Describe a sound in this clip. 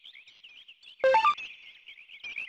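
An electronic chime sounds as a menu selection opens.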